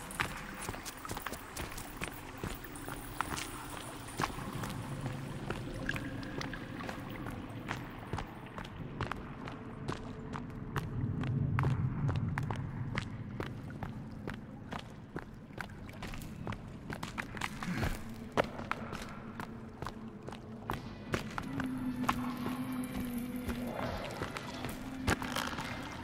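Footsteps crunch on rocky ground at a steady walking pace.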